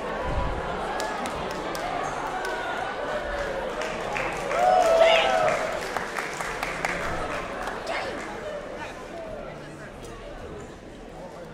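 An audience cheers and shouts in a large hall.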